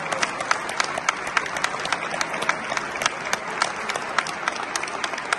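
A men's choir sings together in a large echoing hall.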